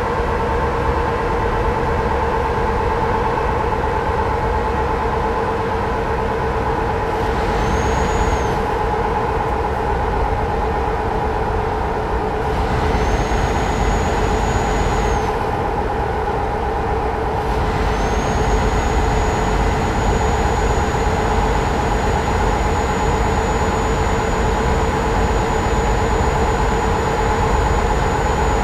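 Tyres roll on a smooth motorway.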